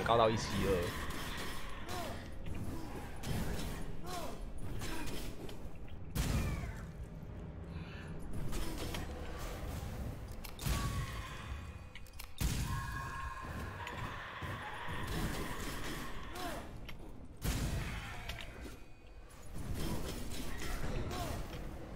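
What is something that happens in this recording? Fiery spell blasts burst with loud whooshes and crackles.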